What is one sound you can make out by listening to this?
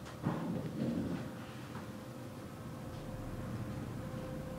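An elevator hums quietly as it rises.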